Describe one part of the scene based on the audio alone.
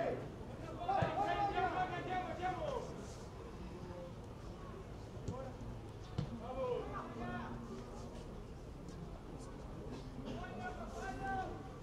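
A ball is kicked with a dull thump.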